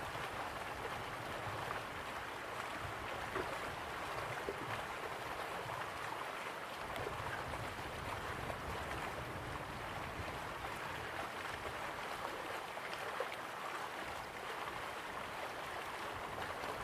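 A waterfall rushes and roars steadily.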